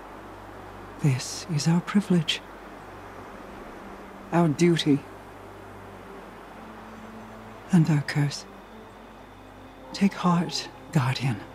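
A woman speaks slowly and solemnly, in short phrases with pauses.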